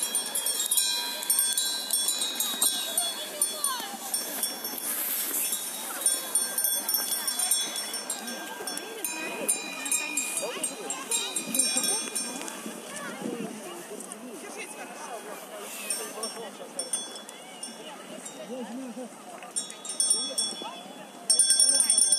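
Small bells on reindeer harnesses jingle.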